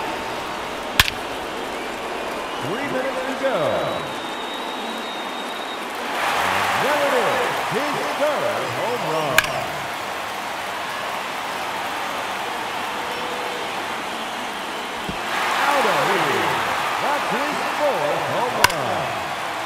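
A bat sharply cracks against a ball.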